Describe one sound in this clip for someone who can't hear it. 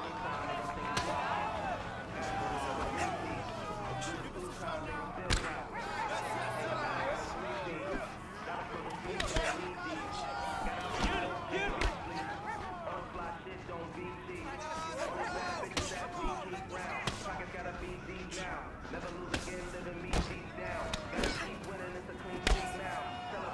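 Punches land with sharp thuds, again and again.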